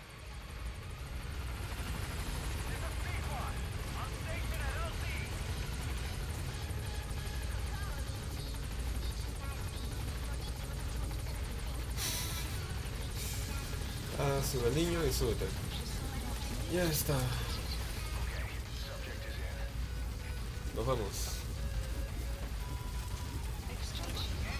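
A helicopter's rotor thumps and roars close by.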